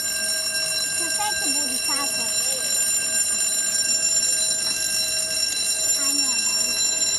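Young children talk nearby.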